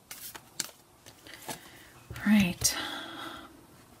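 A card is laid down on a hard tabletop.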